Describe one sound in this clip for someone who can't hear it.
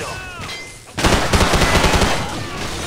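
Gunfire bursts loudly and echoes around the room.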